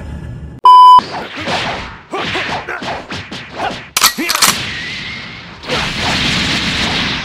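Punches and blasts crack and thud in a fight.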